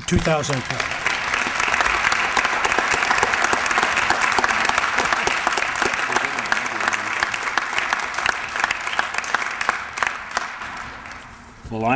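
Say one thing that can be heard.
A crowd applauds loudly in an echoing hall.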